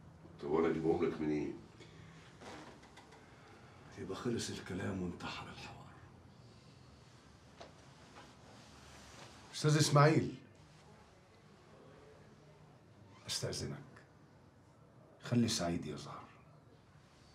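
A middle-aged man speaks calmly and firmly nearby.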